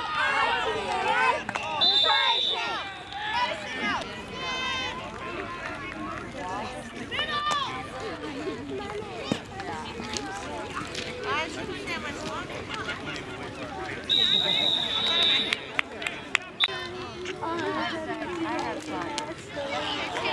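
A crowd of adult spectators and coaches shout and cheer outdoors.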